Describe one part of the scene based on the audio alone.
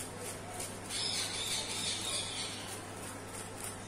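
A plastic packet crinkles.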